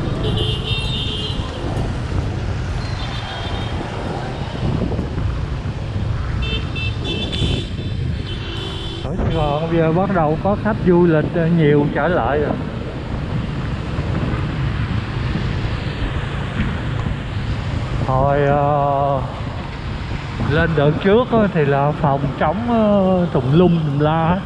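A motorbike engine rumbles steadily while riding.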